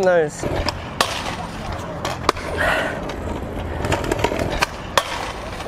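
A metal scooter deck scrapes along a metal rail.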